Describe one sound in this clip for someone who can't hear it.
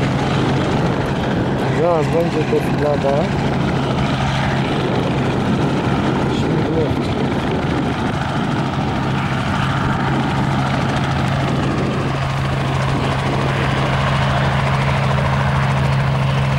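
An aircraft engine drones steadily in the distance.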